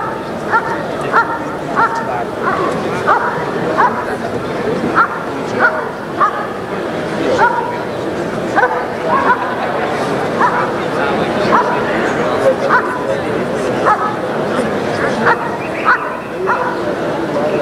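A dog barks repeatedly and fiercely close by.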